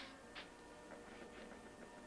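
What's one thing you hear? A knife scrapes paint across a palette.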